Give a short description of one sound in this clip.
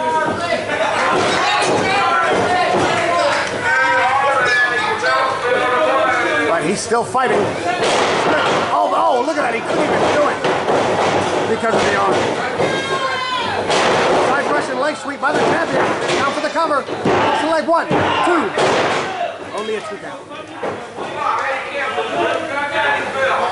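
A crowd of people shouts and cheers loudly.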